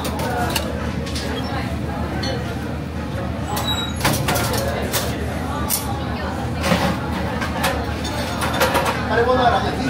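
Pans scrape and clatter on the stove.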